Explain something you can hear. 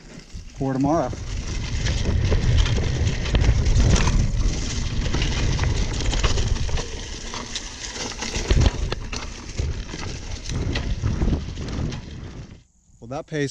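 Wind rumbles against the microphone as a bicycle rides fast.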